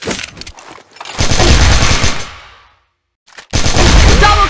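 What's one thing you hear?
Heavy gunfire rattles in rapid bursts.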